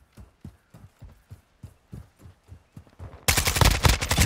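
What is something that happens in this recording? Footsteps thud quickly and evenly on hard ground.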